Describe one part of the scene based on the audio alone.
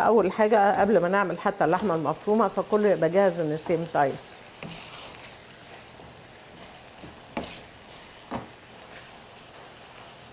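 A wooden spoon scrapes and stirs food in a metal pan.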